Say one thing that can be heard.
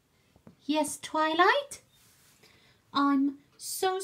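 A plastic toy taps down on a hard floor.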